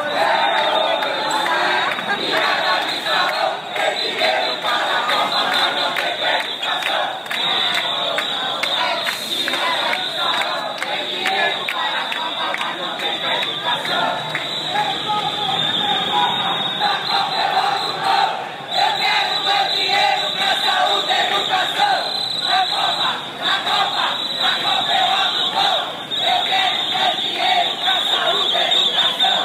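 A large crowd chants loudly together outdoors.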